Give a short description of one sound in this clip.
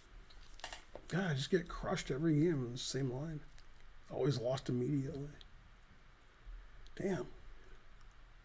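A middle-aged man speaks briefly and calmly into a microphone.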